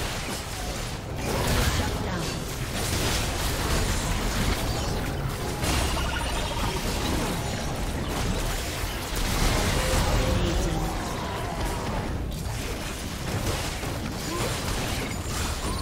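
Game spell effects burst and crackle quickly during a battle.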